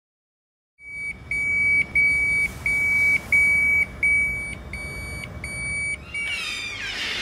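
A medical monitor beeps steadily.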